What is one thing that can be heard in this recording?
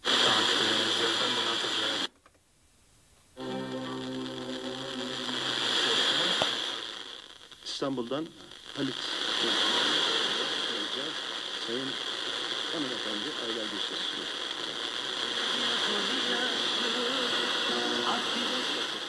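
An FM tuner plays a weak distant station through hiss and static.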